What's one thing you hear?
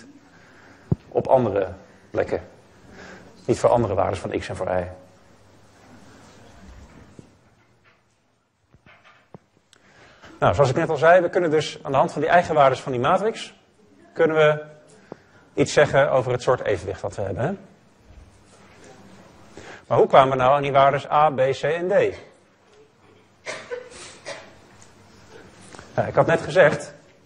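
A man lectures calmly through a microphone, pausing between phrases.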